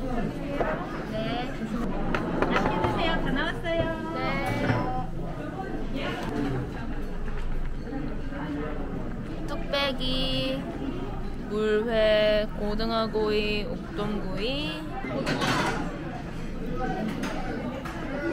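Young women chat close by.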